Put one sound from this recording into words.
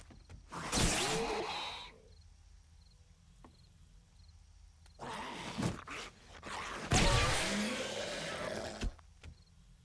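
A heavy blade strikes with thuds.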